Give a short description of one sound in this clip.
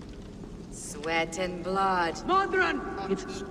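A man declaims loudly in a dramatic, chanting voice.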